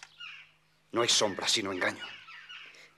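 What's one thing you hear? A man speaks firmly close by.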